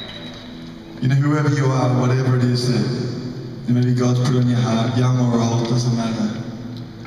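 A man sings into a microphone through loud speakers.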